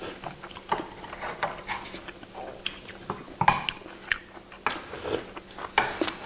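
Chopsticks clink against bowls.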